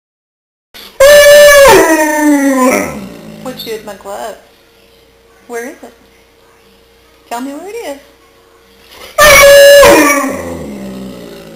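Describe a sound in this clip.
A dog howls loudly and long, close by.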